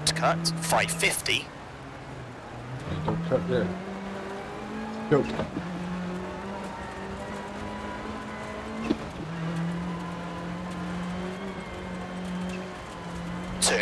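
Gravel rattles and pings under a car's tyres.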